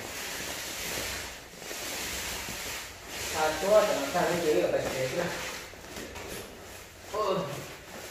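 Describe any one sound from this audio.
A long pole scrapes across a rough wall.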